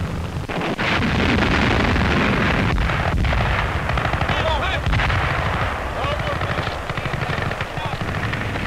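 A loud explosion booms and rumbles.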